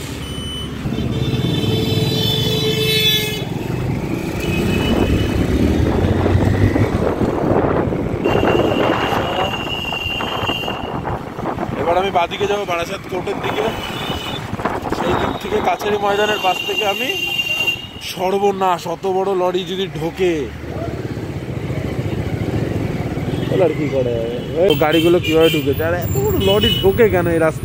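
Traffic rumbles along a busy street outdoors.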